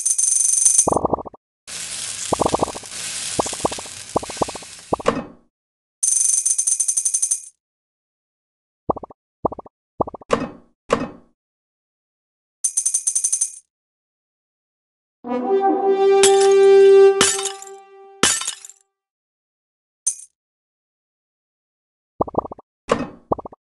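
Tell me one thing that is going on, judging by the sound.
Short bright game chimes ring again and again.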